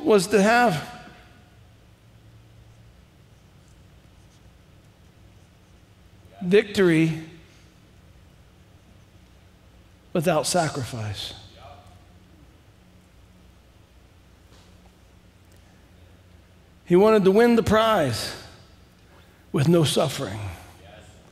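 A man speaks calmly through a microphone in short phrases with long pauses.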